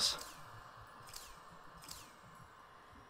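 A short chiming sweep sounds a few times.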